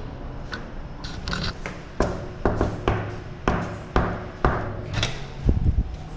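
Footsteps thud along a hard floor.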